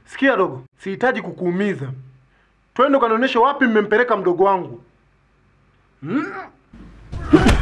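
A young man speaks tensely up close.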